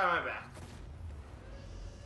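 A loud explosion bursts.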